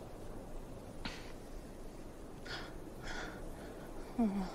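A young woman sobs.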